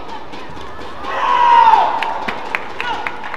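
A crowd in a large hall cheers and shouts.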